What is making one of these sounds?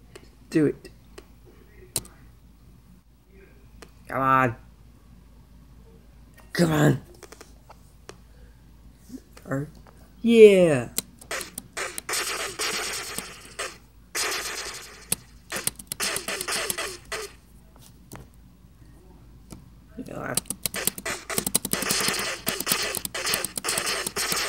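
Electronic arcade game sounds bleep, zap and crackle from a small speaker.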